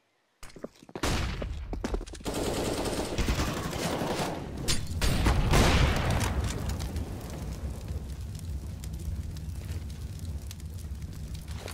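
Flames roar and crackle loudly close by.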